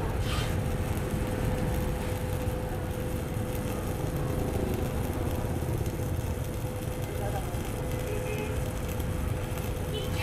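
A welding arc crackles and sizzles steadily.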